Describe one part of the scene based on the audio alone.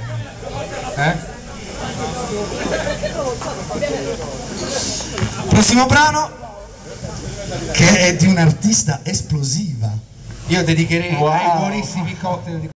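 A man sings loudly into a microphone over a sound system.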